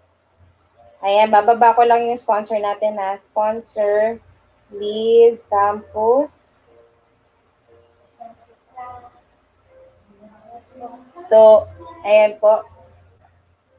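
A young woman sings close to a microphone.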